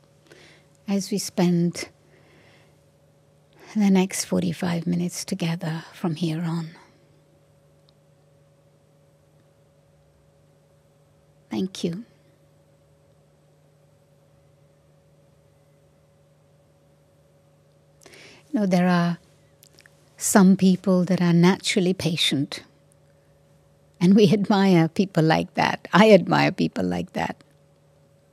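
An elderly woman speaks calmly into a microphone, with long pauses.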